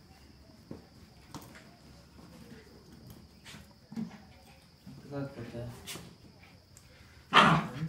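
A small dog's claws click on a tiled floor.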